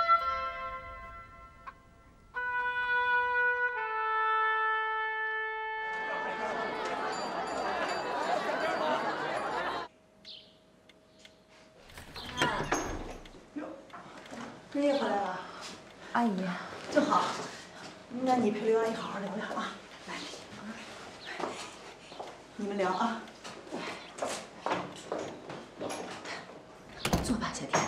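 A second woman answers in a calm voice.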